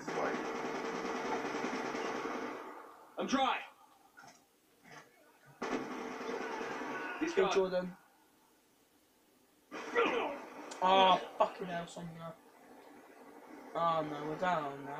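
Video game sound effects play from a television speaker.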